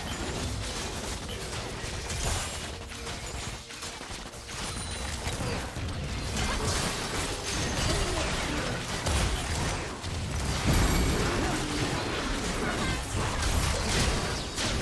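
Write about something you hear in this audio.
Game spell effects whoosh and crackle during a battle.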